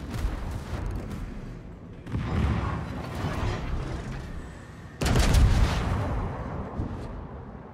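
Shells explode with heavy rumbling blasts.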